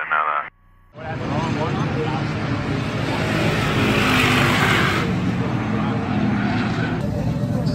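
Race car engines rumble and rev loudly nearby.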